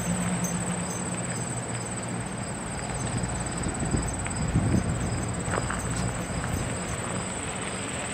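A bee buzzes softly close by.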